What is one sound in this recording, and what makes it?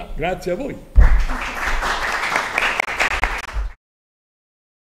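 A woman claps her hands quickly.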